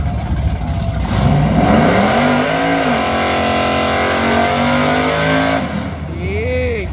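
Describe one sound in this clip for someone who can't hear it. A drag racing engine revs hard and roars.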